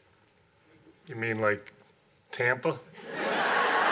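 A man speaks with surprise, close by.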